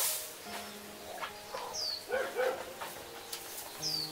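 A cow munches on hay.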